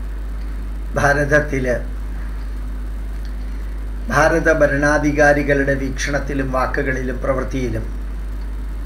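An older man speaks calmly and close by, in short phrases.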